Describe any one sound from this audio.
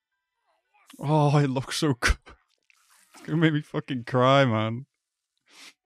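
A young man speaks with emotion close to a microphone.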